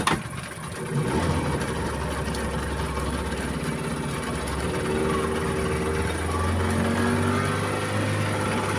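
A small boat's engine drones as the boat gets underway.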